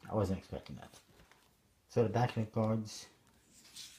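Playing cards shuffle and rustle as a hand picks them up.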